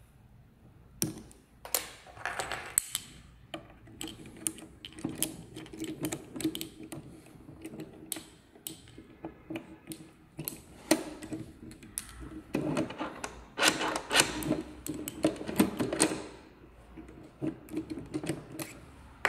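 A key scrapes and clicks in a lock.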